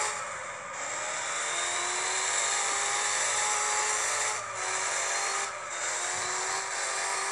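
A car engine revs high and steady.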